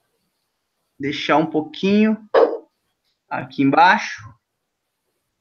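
A young man talks calmly into a microphone, heard as if over an online call.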